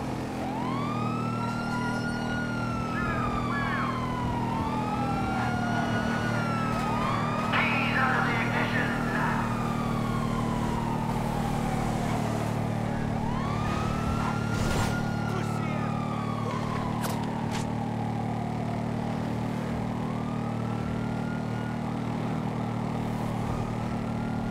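A motorcycle engine revs up and winds down again and again through the gears.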